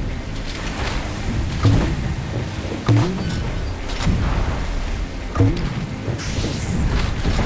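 A small motorboat engine hums steadily.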